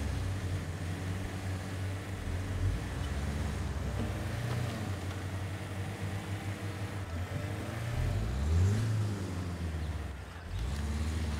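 An off-road vehicle's engine rumbles low and revs up and down as it climbs over rough rocky ground.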